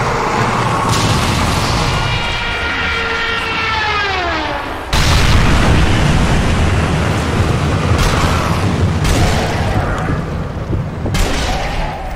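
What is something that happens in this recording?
Rifle shots crack loudly, each followed by a rolling echo.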